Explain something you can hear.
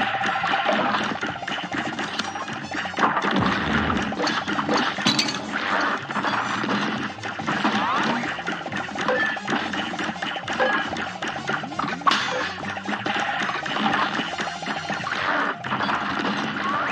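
Cartoon hits pop and crackle in quick bursts.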